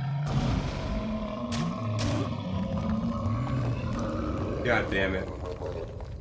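A large beast growls low and close.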